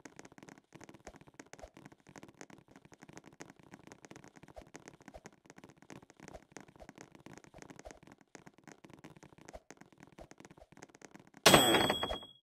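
Light footsteps patter quickly in a video game.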